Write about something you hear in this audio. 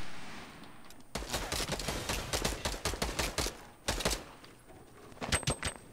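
Wooden panels clatter into place in quick succession.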